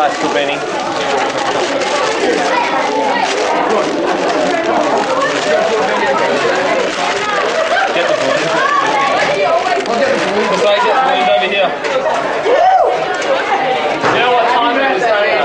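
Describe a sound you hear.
A crowd of people chatter nearby.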